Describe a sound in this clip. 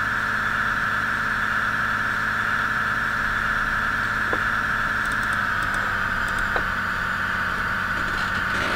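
A train engine hums steadily as the train rolls along the tracks.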